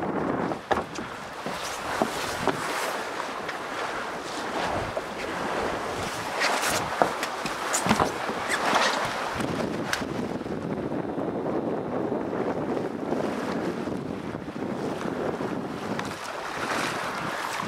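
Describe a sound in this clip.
Sails flap and rustle in the wind.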